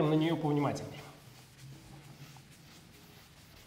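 A cloth wipes across a chalkboard.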